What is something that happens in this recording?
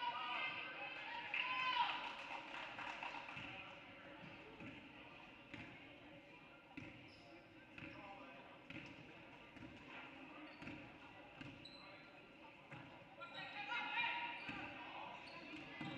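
A basketball bounces repeatedly on a wooden court in a large echoing gym.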